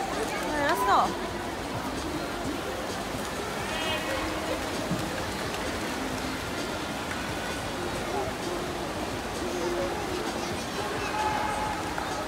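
A crowd of spectators cheers and shouts in an echoing indoor pool hall.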